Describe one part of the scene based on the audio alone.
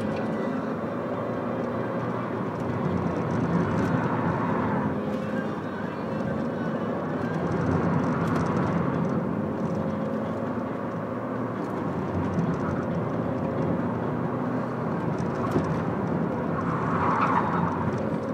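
Tyres roll on asphalt beneath a moving car.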